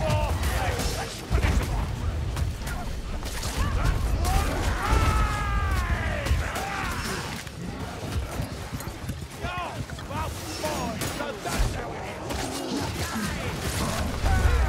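Swords clash and strike against armoured fighters in quick, repeated blows.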